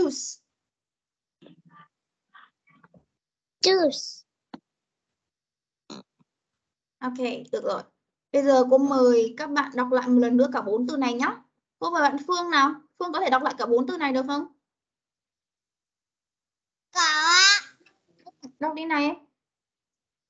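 A woman speaks clearly and slowly over an online call.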